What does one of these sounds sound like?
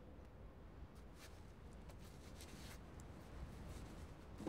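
Feet scrape and scuff on rough rock.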